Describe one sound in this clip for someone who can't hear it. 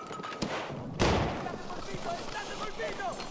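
Rubble crashes down.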